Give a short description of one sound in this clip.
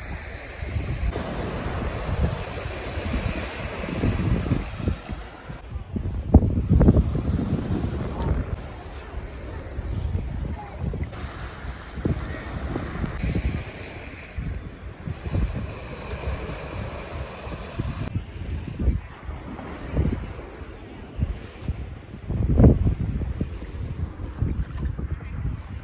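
Shallow sea water laps and sloshes close by.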